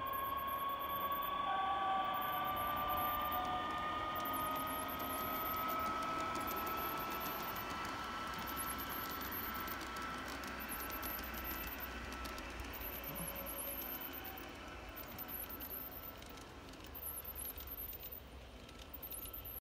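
A garden-scale model electric train hums as it runs along the track and fades into the distance.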